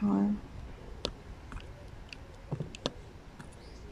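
Small plastic beads click softly as they are pressed into place.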